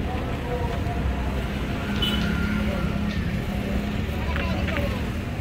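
Traffic rumbles past on a nearby road outdoors.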